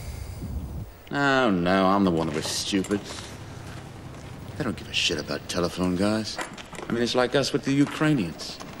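An older man speaks gruffly close by.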